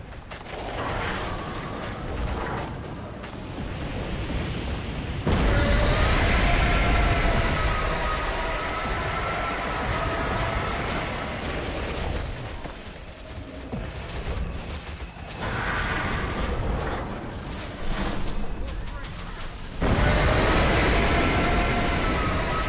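Magic spells blast and crackle in a fantasy battle.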